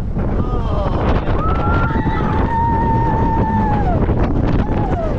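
Riders scream with excitement.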